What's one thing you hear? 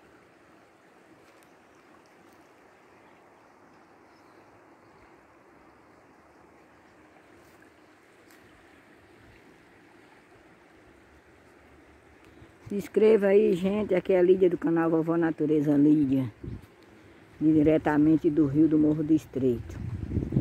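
A river flows with a soft, steady rush of water.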